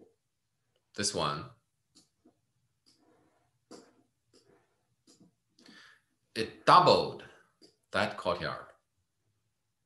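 An older man speaks calmly through an online call microphone, in short phrases with pauses.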